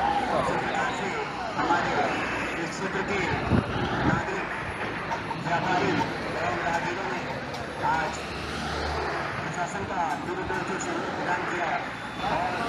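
A crowd of men shout and chatter nearby, outdoors.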